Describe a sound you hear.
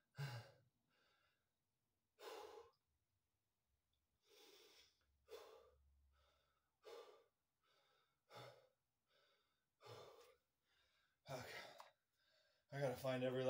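A man breathes out hard in short, regular bursts close by.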